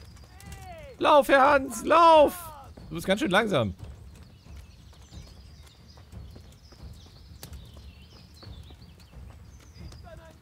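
Footsteps run over a dirt path.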